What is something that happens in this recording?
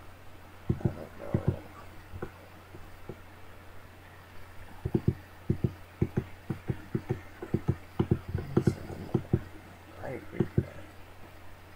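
A young man murmurs softly into a headset microphone.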